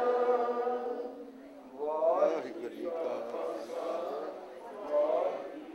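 A man sings through a microphone and loudspeakers.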